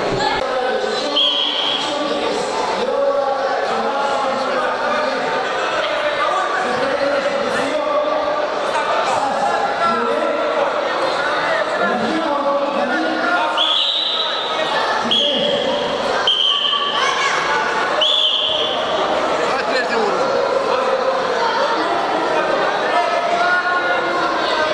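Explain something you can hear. A crowd of spectators chatters and calls out in an echoing indoor hall.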